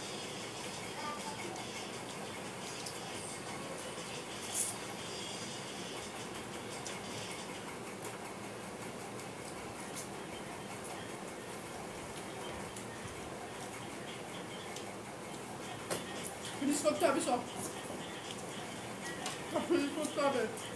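Fingers mix and scrape food on plates.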